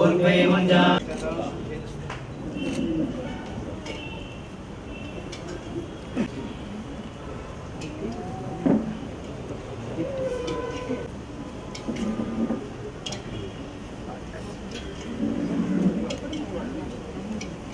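A crowd of men and women murmur and talk quietly nearby.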